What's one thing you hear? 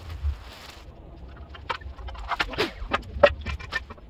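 A metal cover clanks shut.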